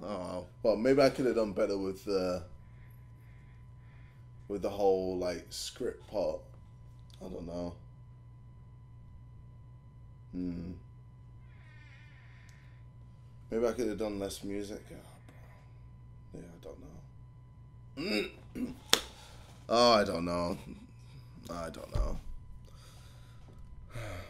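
A young man speaks close by in short bursts, with animation.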